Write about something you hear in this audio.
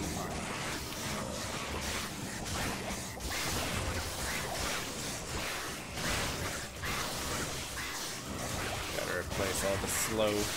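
Game combat sounds clash and burst with fiery effects.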